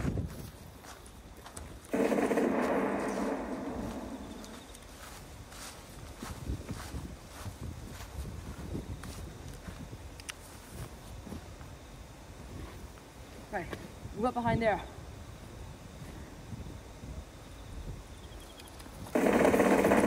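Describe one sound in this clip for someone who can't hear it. Footsteps rustle through long grass.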